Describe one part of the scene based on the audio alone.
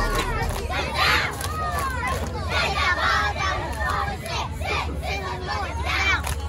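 A group of young girls chant and cheer loudly in unison outdoors.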